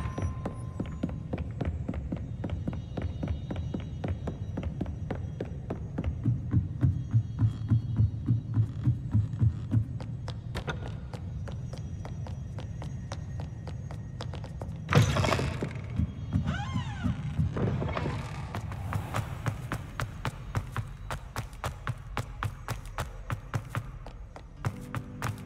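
Quick footsteps patter steadily across a hard floor.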